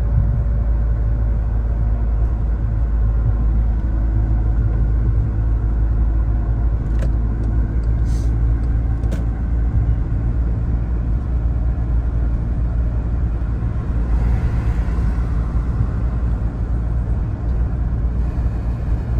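Tyres roll steadily on the road.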